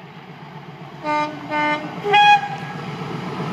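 A train horn sounds three short blasts.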